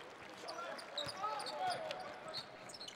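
A basketball bounces on a hardwood court as a player dribbles.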